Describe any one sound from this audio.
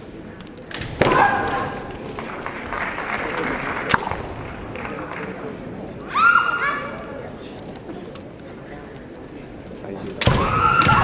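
Young women shout sharp, high battle cries in a large hall.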